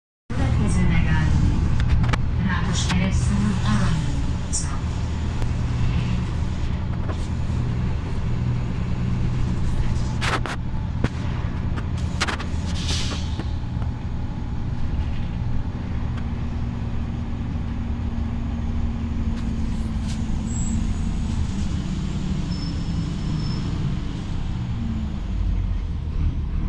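A bus engine rumbles low and steady while driving.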